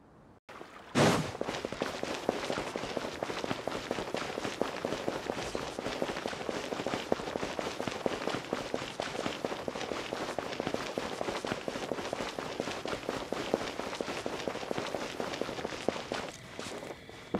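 Quick footsteps patter on stone as a character runs.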